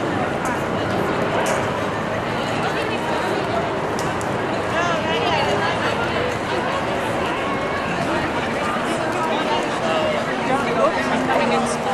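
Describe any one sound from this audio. A crowd of people chatters outdoors in a busy street.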